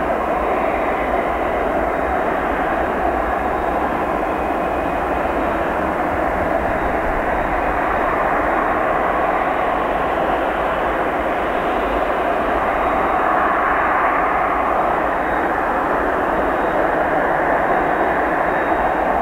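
A jet engine roars loudly and steadily as an airliner taxis close by.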